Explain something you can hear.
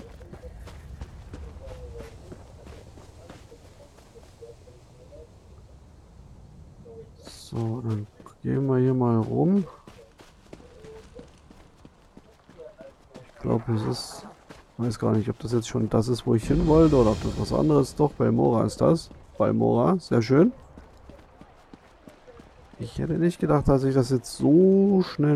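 Footsteps crunch steadily on grass and stone.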